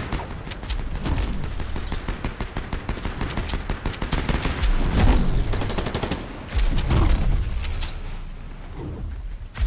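Bursts of rushing air whoosh past as a character launches upward.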